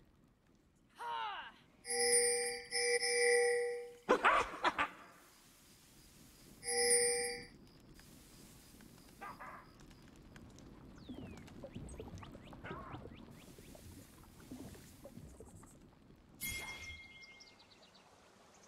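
Fantasy battle sounds whoosh and clash.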